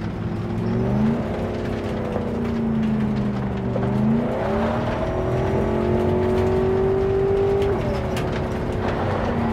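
A car engine hums and rises and falls in pitch as the car drives.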